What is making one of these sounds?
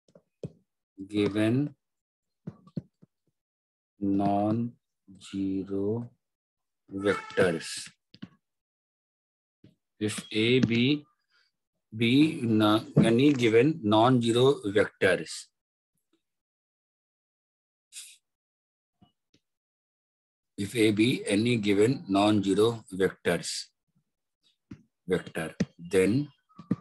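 A man explains calmly over a microphone, with pauses.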